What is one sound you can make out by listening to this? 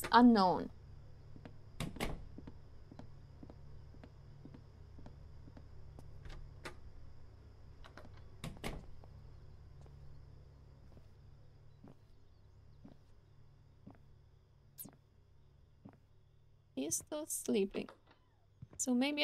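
A young woman talks into a microphone, close and casual.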